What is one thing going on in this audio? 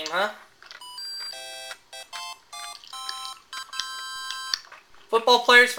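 Short electronic game tunes beep in quick steady notes.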